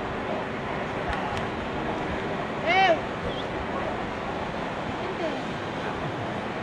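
A large crowd of men and women chatters and murmurs outdoors at a distance.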